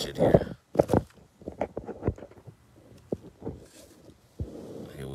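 A man speaks calmly and close to a phone microphone.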